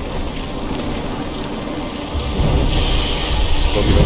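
Tall grass rustles as someone pushes through it.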